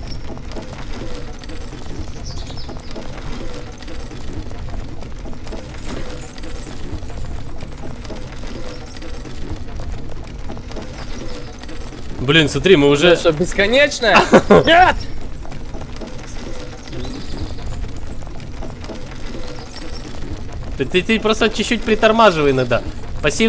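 Footsteps patter quickly on a wooden walkway.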